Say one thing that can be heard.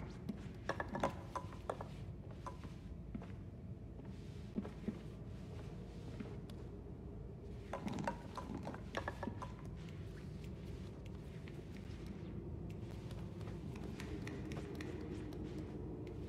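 Small footsteps patter softly across a hard floor.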